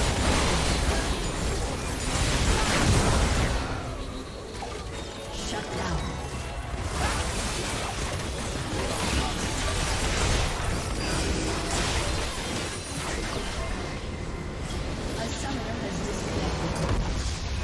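Game spell effects and weapon hits crash and clatter in a chaotic fight.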